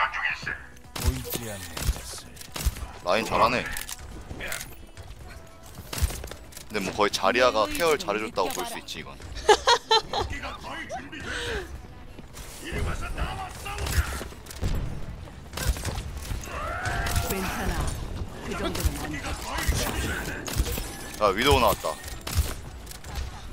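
Sharp rifle shots crack now and then.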